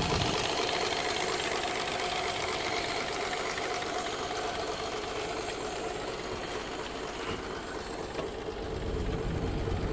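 A car engine idles steadily close by.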